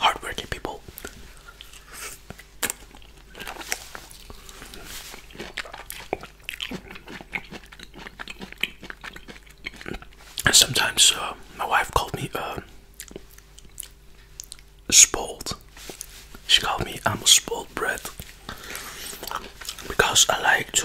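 A man chews and smacks his lips close to a microphone.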